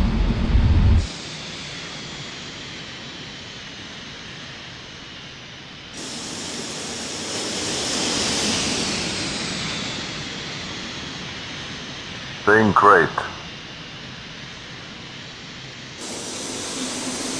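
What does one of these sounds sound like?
A jet airliner's engines roar and whine steadily.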